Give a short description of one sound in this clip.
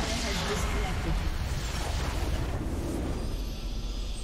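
A crystal structure shatters with a loud crashing roar.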